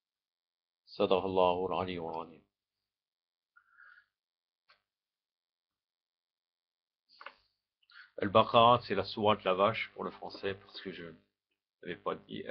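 A man speaks calmly into a nearby microphone, with pauses.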